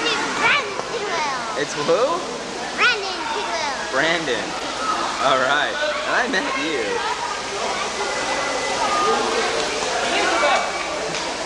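Several adults and children chatter in the background.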